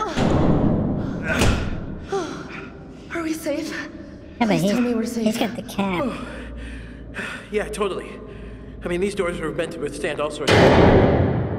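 A young man talks urgently nearby.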